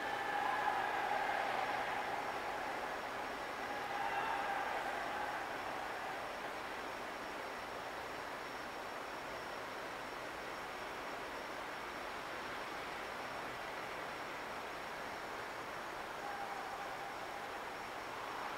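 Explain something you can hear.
City traffic hums steadily in the distance.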